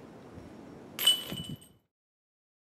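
A disc golf disc clanks into the metal chains of a basket.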